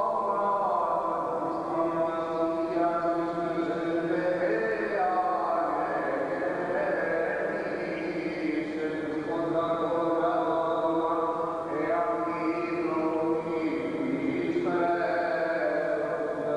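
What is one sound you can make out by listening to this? A man chants in a slow, sustained voice, echoing in a large hall.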